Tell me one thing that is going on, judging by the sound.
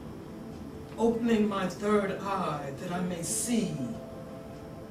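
An elderly woman speaks with feeling in a large echoing room.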